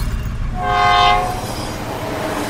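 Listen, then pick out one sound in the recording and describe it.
A locomotive horn blasts once.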